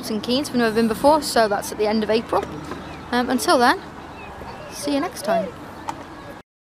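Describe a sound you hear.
A woman talks animatedly, close up, outdoors.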